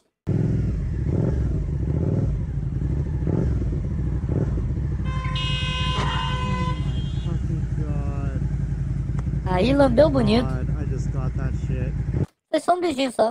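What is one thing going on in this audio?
A motorcycle engine rumbles steadily up close.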